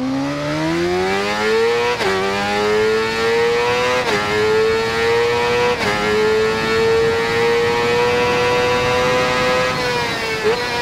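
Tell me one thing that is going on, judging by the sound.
An inline-four sport bike engine screams as it accelerates and shifts up through the gears.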